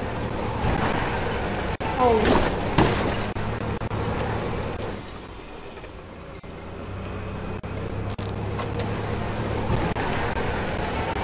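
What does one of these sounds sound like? Tyres roll over grass and dirt.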